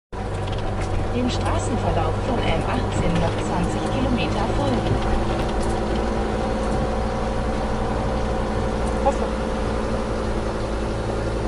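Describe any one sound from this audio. Tyres rumble over wooden bridge planks.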